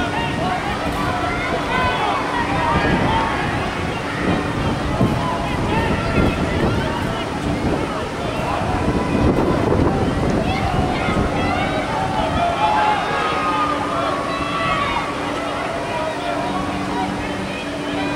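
A crowd of spectators shouts and cheers in an open outdoor stadium.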